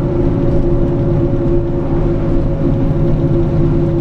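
An oncoming bus passes by.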